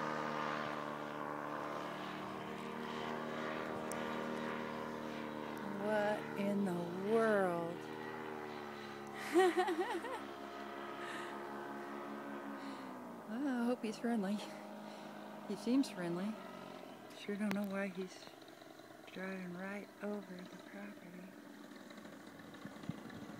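A paramotor engine drones overhead, its pitch slowly dropping.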